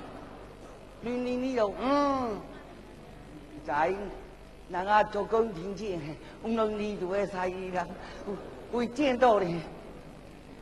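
A man sings in a high, drawn-out operatic voice.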